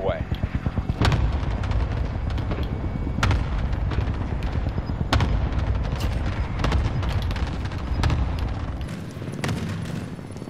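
Rifle shots crack out one at a time.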